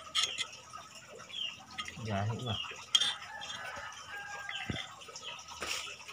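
Metal tools clink and tap against a small motor.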